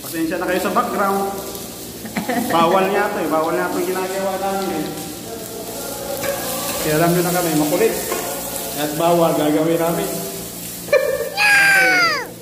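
Onions sizzle in a hot pot.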